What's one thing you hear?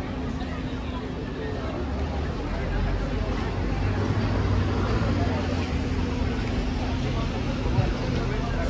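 A bus engine idles and hums nearby.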